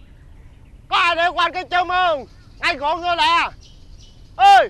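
A young man laughs loudly and happily close by.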